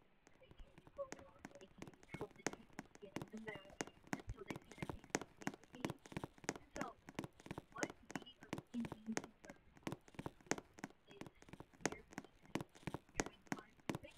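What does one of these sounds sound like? Quick footsteps patter steadily on a hard surface.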